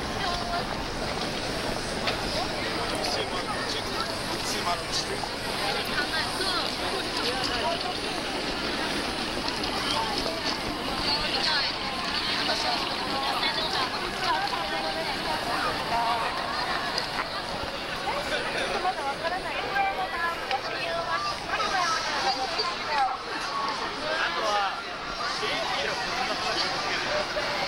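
A busy crowd of people murmurs and chatters all around outdoors.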